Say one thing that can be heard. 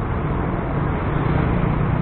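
A passing motorbike buzzes by.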